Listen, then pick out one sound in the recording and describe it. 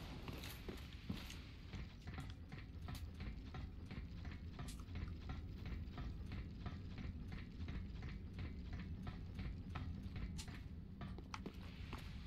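Armoured footsteps clank steadily on metal ladder rungs.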